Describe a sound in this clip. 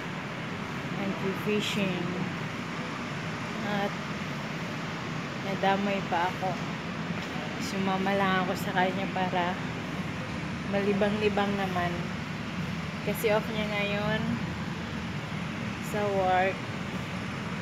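A woman talks calmly and close to the microphone.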